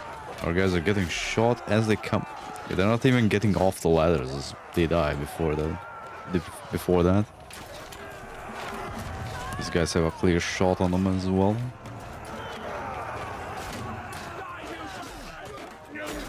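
A crowd of soldiers shouts in a distant battle.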